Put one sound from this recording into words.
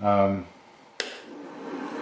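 A machine switch clicks.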